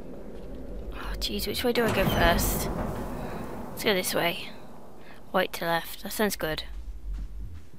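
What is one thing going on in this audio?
A young woman talks with animation into a close headset microphone.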